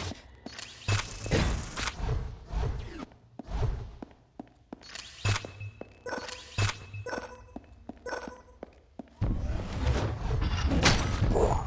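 Electronic game sound effects blip and whoosh in quick bursts.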